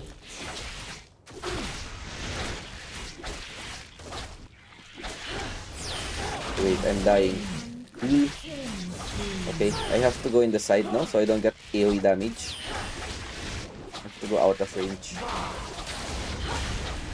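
Game spell effects whoosh and clash throughout.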